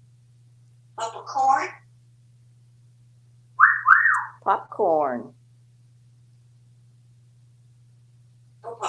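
A parrot chatters and mimics sounds in short bursts.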